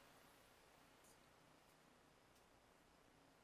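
A metal spring clinks softly as it is set down on a cloth.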